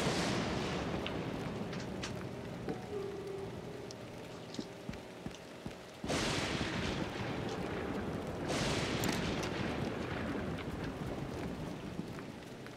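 A child's footsteps tap on a floor indoors.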